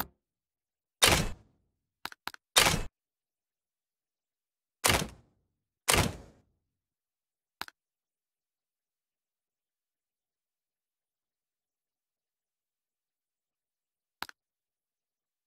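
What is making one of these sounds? Short interface whooshes and clicks sound as menu options are chosen.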